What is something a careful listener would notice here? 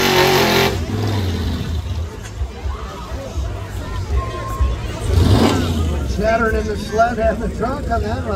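A crowd cheers and shouts from the stands.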